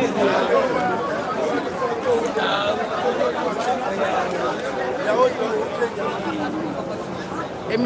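A crowd of people chatters loudly close by.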